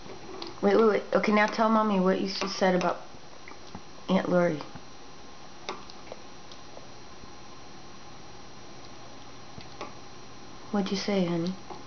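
A spoon scrapes and clinks against a bowl.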